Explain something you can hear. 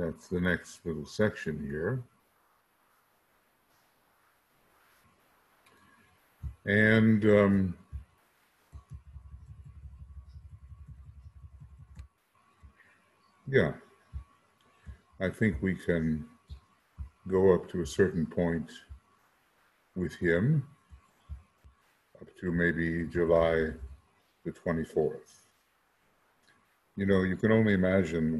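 An elderly man speaks calmly through a microphone, in short bursts with pauses.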